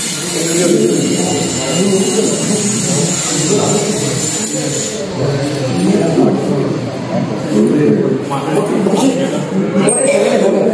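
Several men and women talk over one another nearby in a crowded room.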